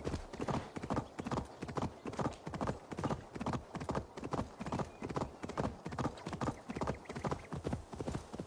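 Horse hooves thud steadily at a trot on a dirt path.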